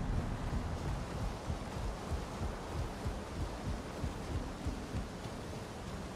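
Footsteps thud on a wooden rope bridge.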